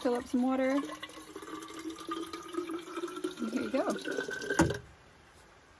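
Water pours from a tap into a bottle, rising in pitch as it fills.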